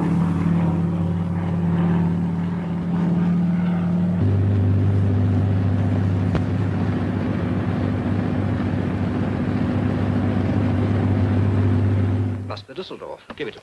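Aircraft engines drone loudly and steadily.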